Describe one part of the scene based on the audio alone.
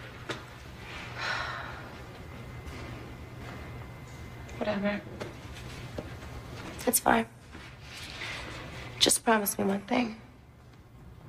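A young woman speaks tensely nearby.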